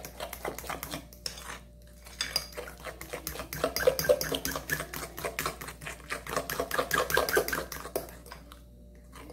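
A spoon beats batter quickly.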